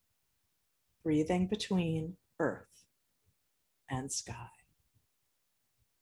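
A woman speaks calmly and briefly into a close microphone.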